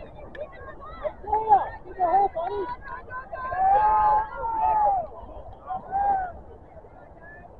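Spectators shout and cheer from the sidelines outdoors.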